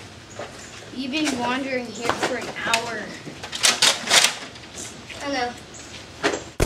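A boy talks loudly nearby.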